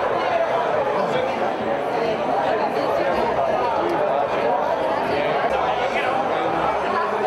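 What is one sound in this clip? A crowd of men and women chatter loudly around the listener in a busy hall.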